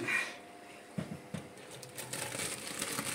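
Cooked pasta and water pour out of a pot into a strainer with a soft splash.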